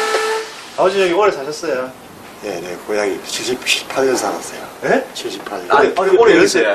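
An older man answers in a loud, cheerful voice.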